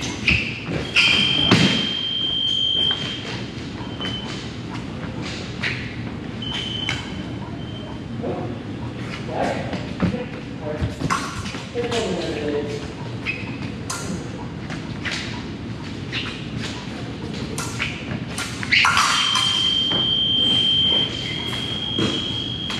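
An electronic scoring box beeps with a steady tone.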